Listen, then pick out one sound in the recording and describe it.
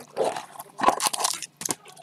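Cardboard rustles as a box is handled.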